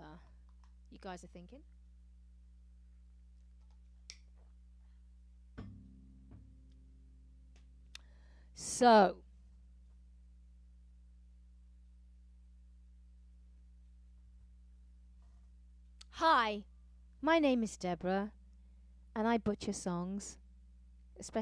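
A woman sings short phrases into a microphone.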